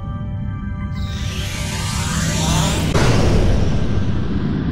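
A loud rushing whoosh surges up and then fades.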